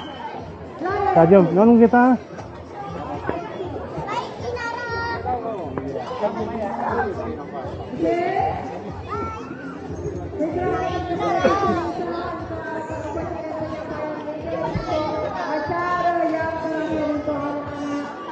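Children shout and squeal as they play nearby.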